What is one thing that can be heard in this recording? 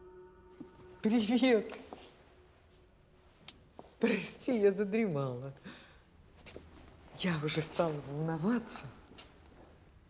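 An elderly woman speaks warmly nearby.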